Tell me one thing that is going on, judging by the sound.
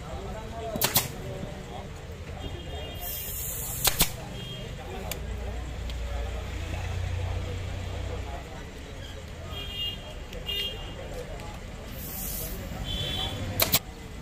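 A pneumatic staple gun fires sharp snapping shots.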